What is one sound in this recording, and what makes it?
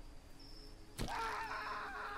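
A knife stabs into flesh with a wet splatter.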